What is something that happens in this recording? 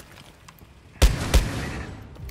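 A gun fires two loud shots.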